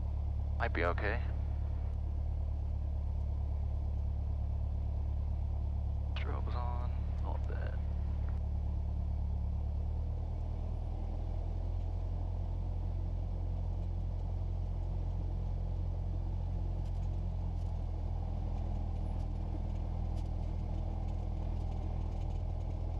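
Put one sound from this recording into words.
A small plane's propeller engine drones steadily, its pitch dropping slightly partway through.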